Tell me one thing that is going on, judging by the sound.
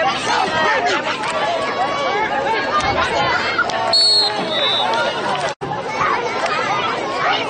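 A crowd of people shout and cheer outdoors.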